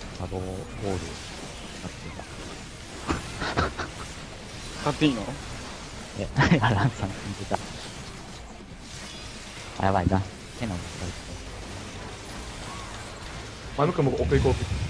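Game spell effects whoosh and burst in short bursts.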